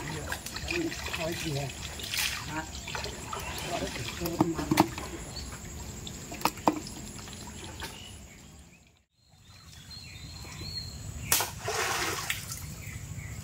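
Water splashes as people wade and move through a pond.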